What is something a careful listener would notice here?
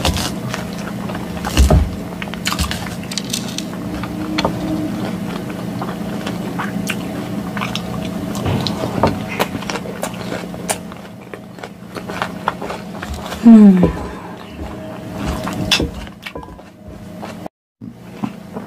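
A woman chews crunchy salad close to a microphone.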